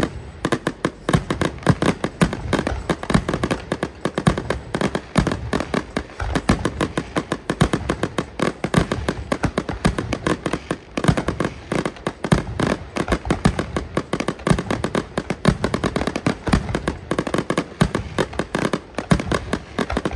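Rockets whistle and hiss as they launch.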